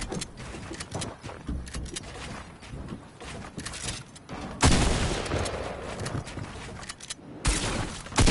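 Building pieces snap into place with quick clicks and thuds.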